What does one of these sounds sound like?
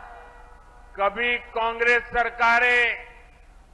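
An elderly man speaks loudly and drawn-out into a microphone over loudspeakers.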